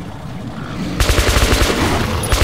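An automatic rifle fires a rapid burst of loud shots.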